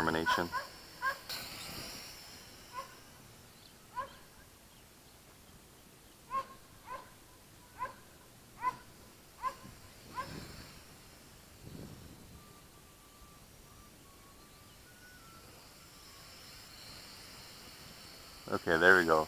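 A small model plane's propeller motor buzzes steadily.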